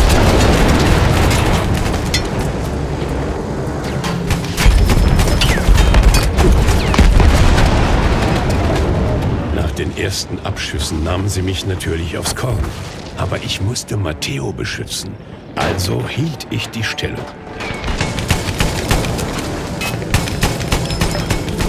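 An anti-aircraft gun fires rapid bursts.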